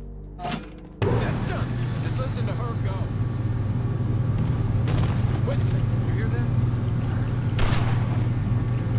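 A large generator starts up and hums loudly and steadily.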